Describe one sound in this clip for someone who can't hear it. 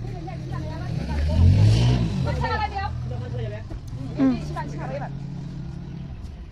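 Young women call out and talk nearby outdoors.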